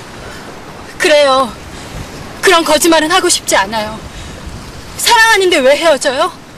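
A young woman calls out loudly and emotionally, close by.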